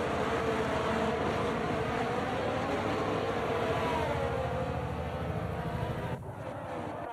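A racing car engine screams at high revs as it passes.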